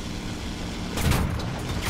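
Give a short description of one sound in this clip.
An explosion booms below.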